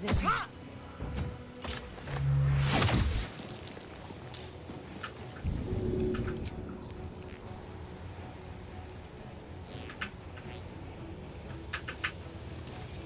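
Sword strikes and spell blasts crash in a fight.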